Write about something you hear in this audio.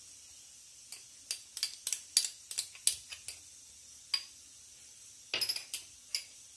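A spoon clinks and taps against a glass bowl.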